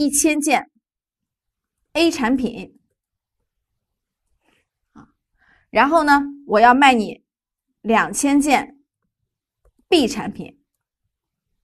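A woman speaks calmly and clearly into a close microphone, in short phrases with pauses.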